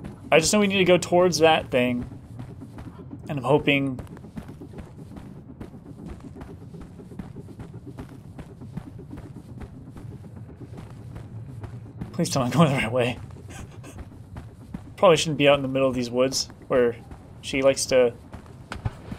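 A young man speaks with animation into a headset microphone, close up.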